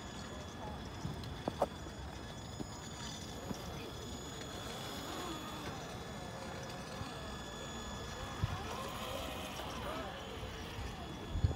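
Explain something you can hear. Plastic tyres knock and scrape on stones.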